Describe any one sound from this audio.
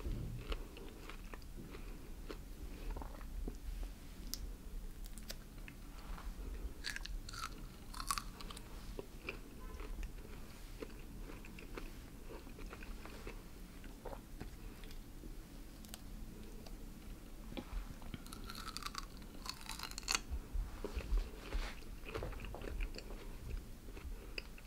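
A man pulls juicy pieces of pineapple apart with his fingers, close up.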